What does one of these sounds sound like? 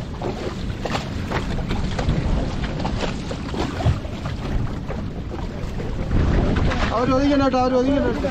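Water splashes and churns beside a boat.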